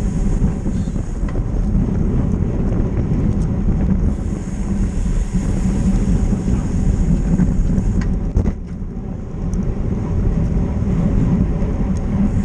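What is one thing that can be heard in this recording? Wind roars and buffets loudly while cycling fast outdoors.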